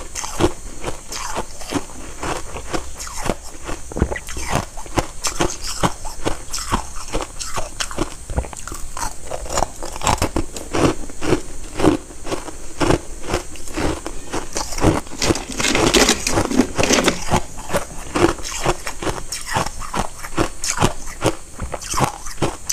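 Ice crackles and rustles as fingers handle it, close to a microphone.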